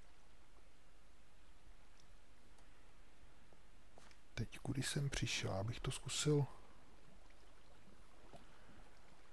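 Water pours steadily in a small waterfall.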